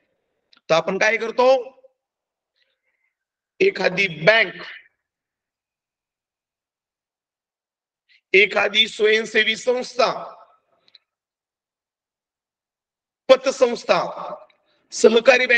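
A man reads aloud in short phrases through an online call.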